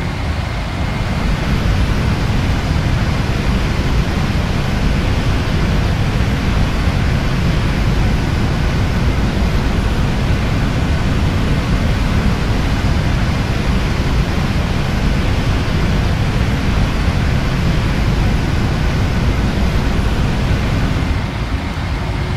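Jet engines roar loudly as an airliner climbs overhead.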